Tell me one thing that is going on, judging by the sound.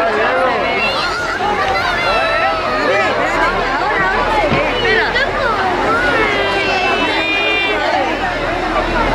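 Children shout and call out excitedly.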